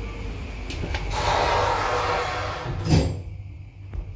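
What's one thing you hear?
Elevator doors slide shut with a rumbling whoosh and a thud.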